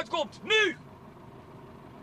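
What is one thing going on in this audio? A man shouts loudly over a running engine.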